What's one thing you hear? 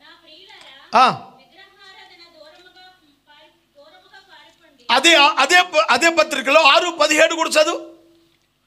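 An elderly man preaches through a microphone, loudly and with fervour.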